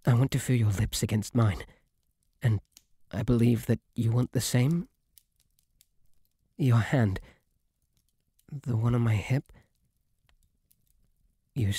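A young man speaks softly and bashfully, close to the microphone, in short bursts with pauses.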